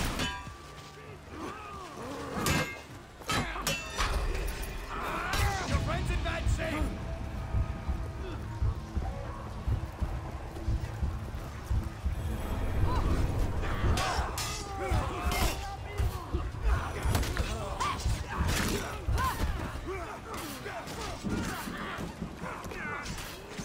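Warriors grunt and shout in battle.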